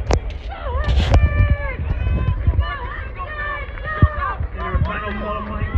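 Spectators shout and cheer loudly outdoors.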